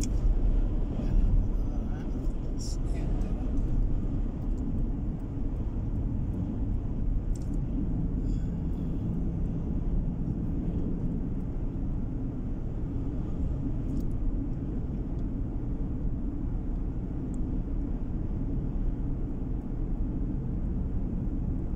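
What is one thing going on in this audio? Tyres roll on the road with a low rumble.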